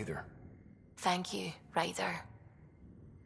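A woman answers briefly.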